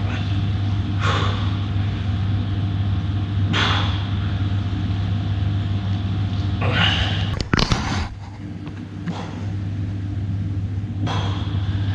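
A man breathes out hard with effort during exercise.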